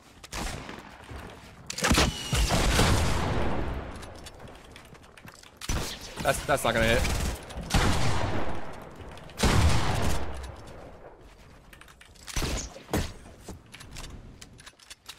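Video game effects whoosh and crash in loud bursts.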